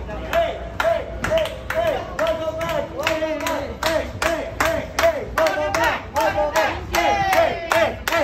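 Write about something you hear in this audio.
A group of young men and women cheer and call out loudly.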